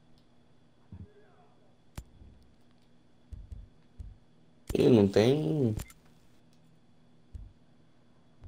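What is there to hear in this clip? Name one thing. Soft electronic menu clicks sound now and then.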